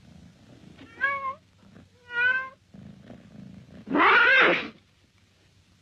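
A man makes high, whining sounds with his voice.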